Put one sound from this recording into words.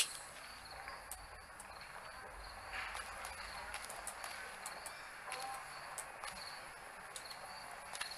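Light footsteps patter across a roof.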